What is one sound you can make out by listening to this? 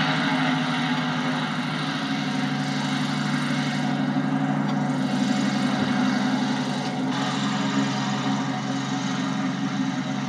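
A small propeller plane's engine drones steadily nearby.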